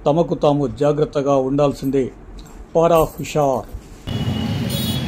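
A man speaks calmly and clearly, close up.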